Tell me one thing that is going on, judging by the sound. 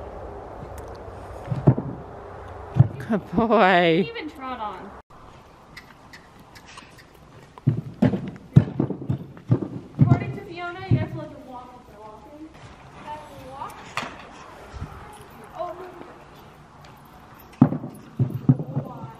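Horse hooves knock on a low wooden platform.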